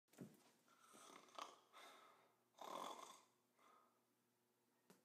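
A young man snores loudly.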